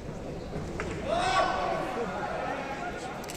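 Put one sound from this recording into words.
A crowd of spectators cheers in a large echoing hall.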